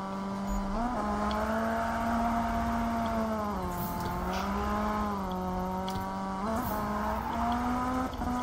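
A car engine roars at high revs, rising and falling as the car drifts.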